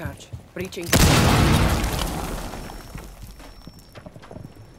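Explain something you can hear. An explosion booms and slowly fades.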